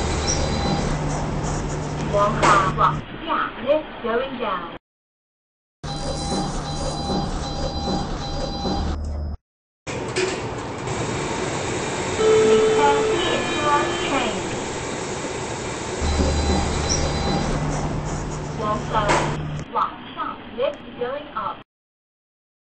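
Elevator doors slide open and shut with a whirring motor.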